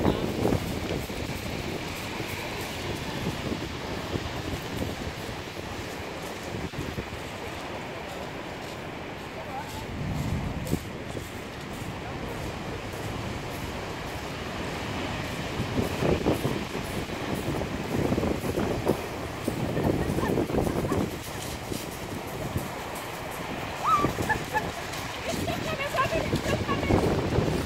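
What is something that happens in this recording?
Footsteps crunch on pebbles.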